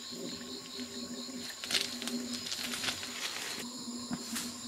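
Dry leaves crackle and crunch underfoot.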